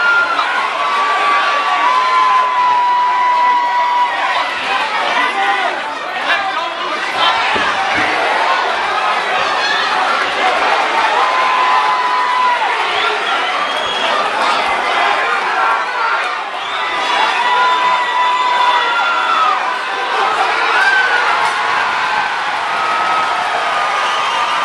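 Men in the crowd shout loud, drawn-out calls.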